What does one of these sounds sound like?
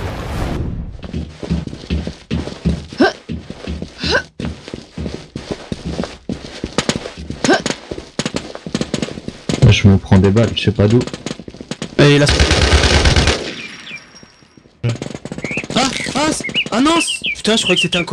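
Footsteps run quickly on hard pavement.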